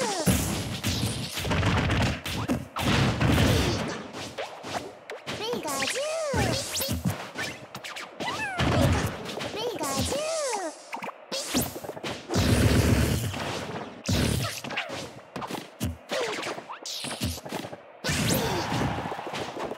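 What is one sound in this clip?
Game fighters clash with sharp hits, blasts and electric zaps.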